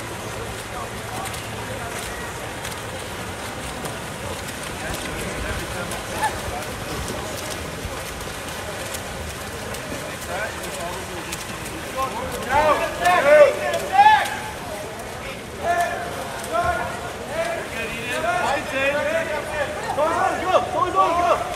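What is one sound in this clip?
Swimmers splash and churn water in an outdoor pool.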